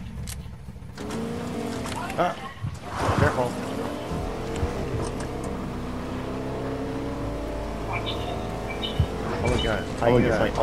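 A truck engine hums steadily as the truck drives.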